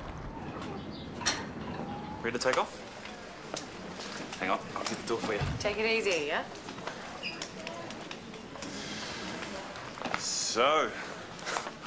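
A man speaks in a relaxed, cheerful way, close by.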